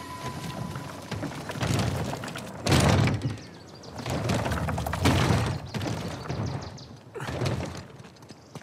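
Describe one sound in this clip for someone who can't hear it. A heavy wooden crate scrapes and grinds across stone.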